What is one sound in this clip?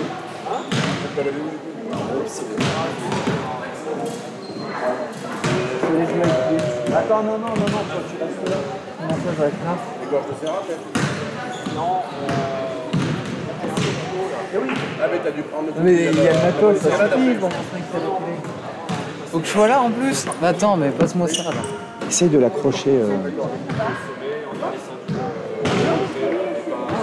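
Men call out to each other across the court.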